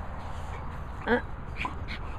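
A dog yelps briefly close by.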